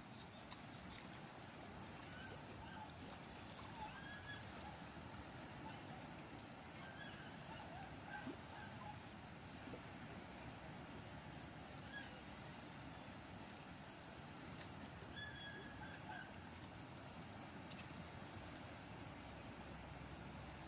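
Water laps gently against rocks outdoors.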